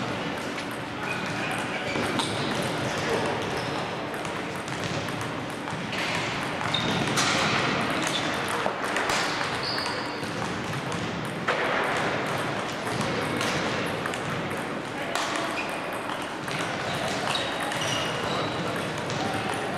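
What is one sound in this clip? Shoes squeak sharply on the floor.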